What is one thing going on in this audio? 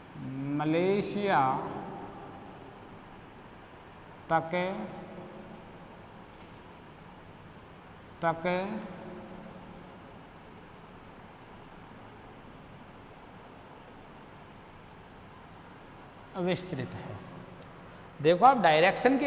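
A man speaks in short bursts in an echoing room.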